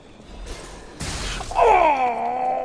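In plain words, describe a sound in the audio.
A sharp magical blast bursts with a crackling impact.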